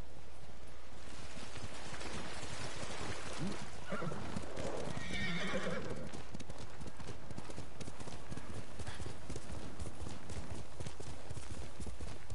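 A horse's hooves thud as it gallops.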